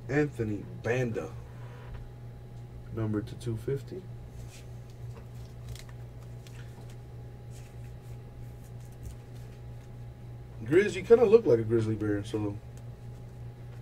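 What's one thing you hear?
Trading cards rustle and flick between fingers.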